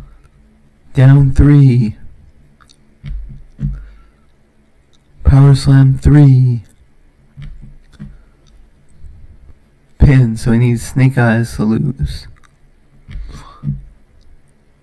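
A young man talks calmly and close to a microphone, in short bursts.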